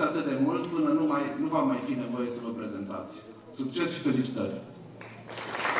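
A man gives a speech through a microphone and loudspeakers.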